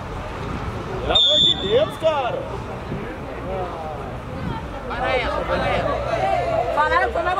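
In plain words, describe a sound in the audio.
Men shout to each other across an open sports field.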